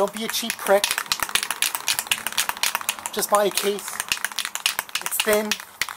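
A spray can rattles as it is shaken by hand.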